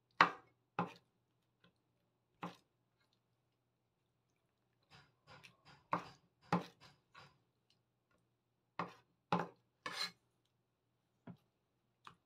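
A knife chops on a wooden cutting board in sharp, uneven knocks.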